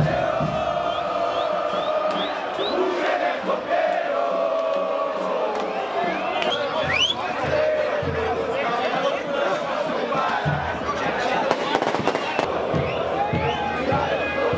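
A large crowd of fans sings and chants loudly outdoors.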